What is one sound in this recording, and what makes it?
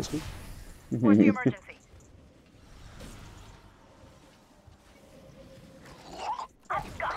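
Game sound effects of a fight crackle and whoosh.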